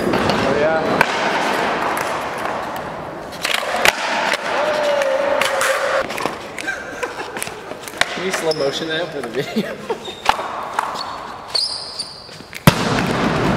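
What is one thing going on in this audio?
A skateboard clacks sharply on a concrete floor.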